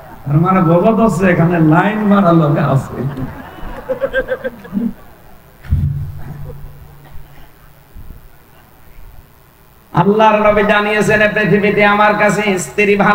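A man chants in a melodic preaching voice through a loudspeaker, with a ringing echo.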